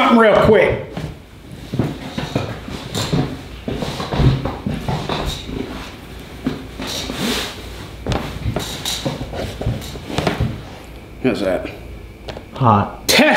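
A man talks in a relaxed way, close by.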